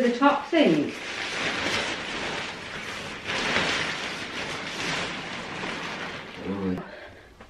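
Tent fabric rustles and crinkles as it is handled.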